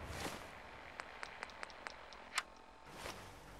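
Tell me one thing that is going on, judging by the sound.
A radio dial clicks as stations are tuned.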